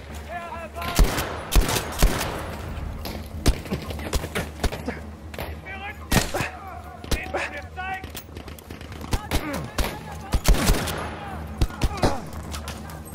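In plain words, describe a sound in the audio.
Rifle shots crack loudly, one after another, with echoes trailing behind.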